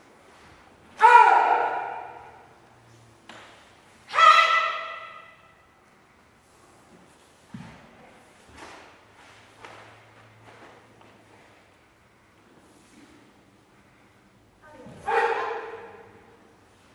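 A group of men and women shout sharply together, ringing out in a large echoing hall.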